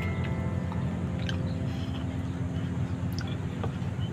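A man gulps a drink.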